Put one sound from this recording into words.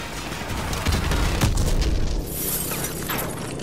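A flamethrower roars and crackles.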